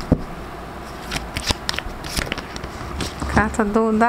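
A card slaps down onto a table.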